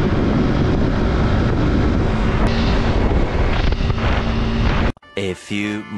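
A motorcycle engine roars at speed.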